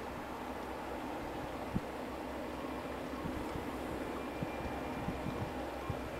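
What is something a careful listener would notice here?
Diesel locomotives rumble steadily as a long freight train passes.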